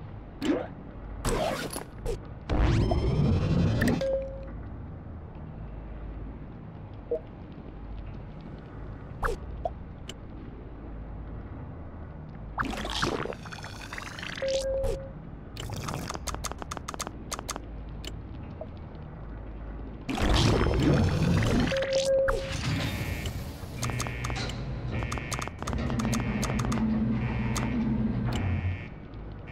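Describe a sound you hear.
Short electronic beeps and clicks sound from a game.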